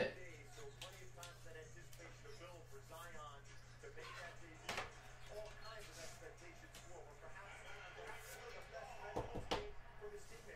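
A hard plastic card case clicks and rustles as hands handle it.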